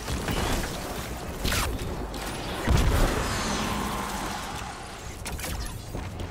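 Gunfire and explosions crack and boom in a video game battle.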